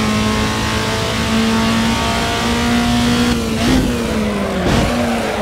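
A racing car engine roars at high revs, dipping in pitch as the gears change.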